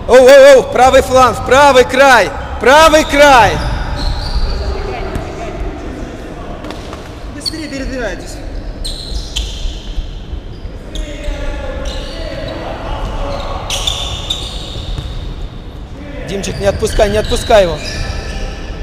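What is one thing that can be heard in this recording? A man shouts loudly nearby in an echoing hall.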